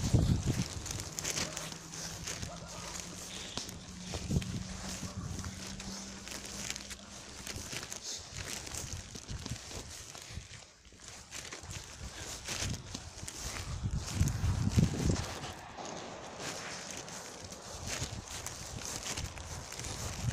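Footsteps walk steadily on paving stones outdoors.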